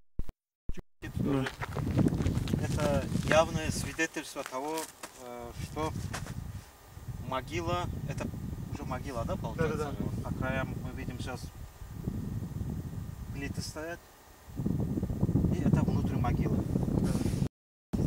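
A man speaks calmly and steadily close by.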